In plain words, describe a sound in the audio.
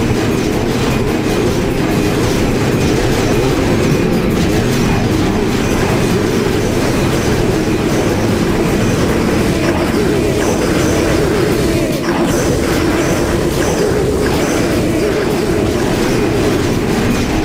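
Cartoonish plants fire a rapid, steady stream of zapping shots.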